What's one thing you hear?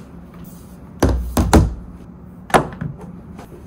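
Objects knock down onto a hard table top.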